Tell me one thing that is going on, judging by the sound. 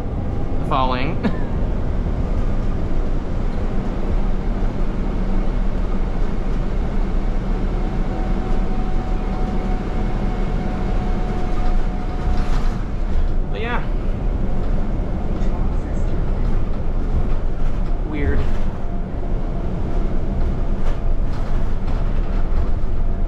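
A bus engine rumbles steadily while the bus drives along.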